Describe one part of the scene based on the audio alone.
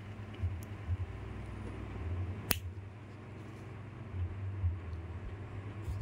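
Nail clippers snip a toenail.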